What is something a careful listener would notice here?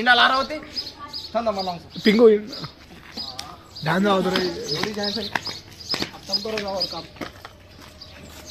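A young man talks and laughs loudly close by.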